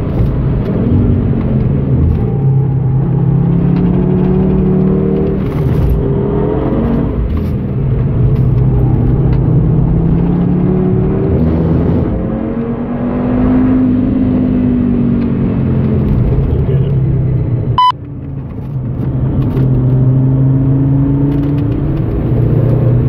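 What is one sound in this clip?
A car engine roars loudly, rising and falling in pitch.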